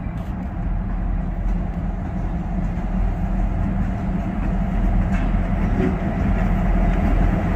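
Train wheels rumble on the rails as the train draws near.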